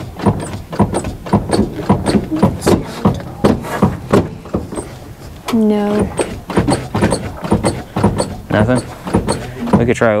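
An engine idles with a rapid, rhythmic ticking.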